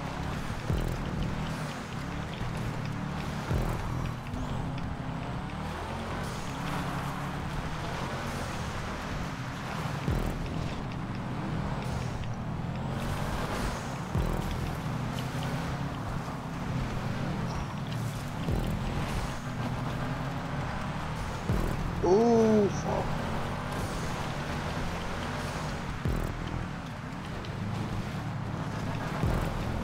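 Tyres crunch and skid over gravel and dirt.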